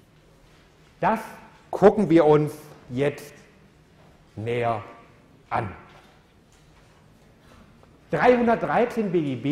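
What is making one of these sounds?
A middle-aged man lectures through a microphone, speaking in short bursts with pauses.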